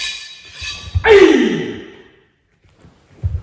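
A man gives a sharp shout that echoes through a large hall.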